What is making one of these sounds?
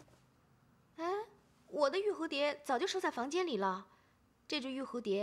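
A young woman speaks calmly and wonders aloud.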